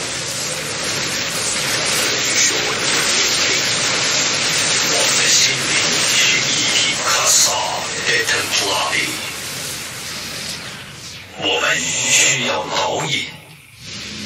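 Energy weapons zap and crackle in a fierce battle.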